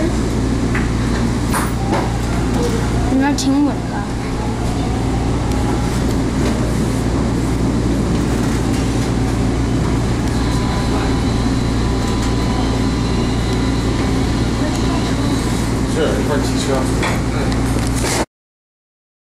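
A subway train idles with a low, steady hum in an echoing station.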